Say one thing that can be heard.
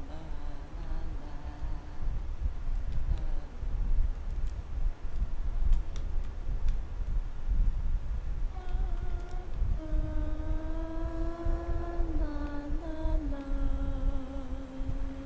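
Footsteps shuffle softly across a hard floor.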